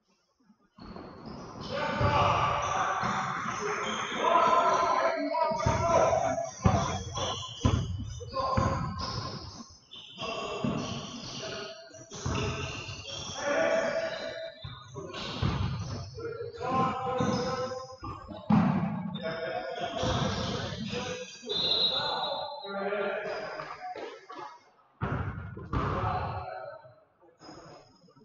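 Men shout and call out to each other in a large echoing hall.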